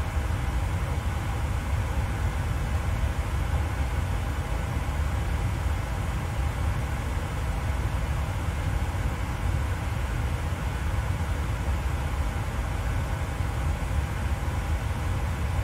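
Jet engines hum steadily at idle.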